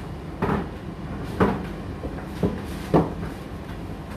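Laundry thumps inside a tumble dryer's turning drum.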